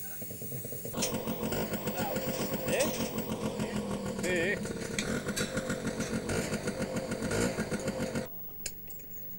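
A small engine idles and revs.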